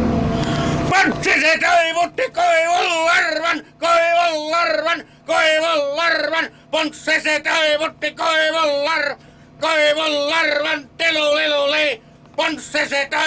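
A middle-aged man talks with animation, close to the microphone.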